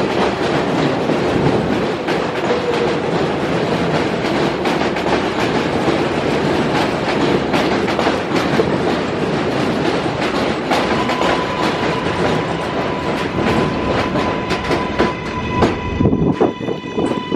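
A subway train rumbles and clatters past close by.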